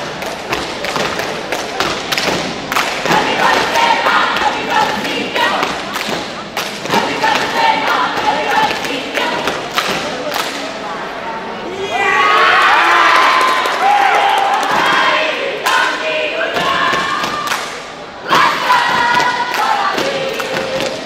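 A group of young people shout and chant in unison in a large echoing hall.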